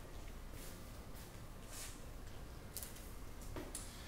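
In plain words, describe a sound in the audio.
Pages of a notebook rustle.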